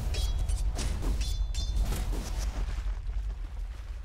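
Fantasy game spell effects whoosh and crackle in quick bursts.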